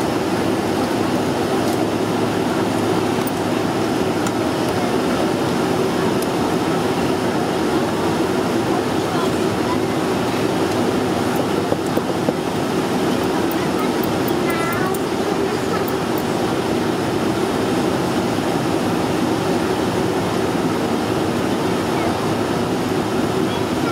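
Jet engines roar steadily, heard from inside an airliner cabin.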